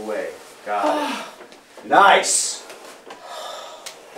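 A young woman gasps and speaks with surprise, close by.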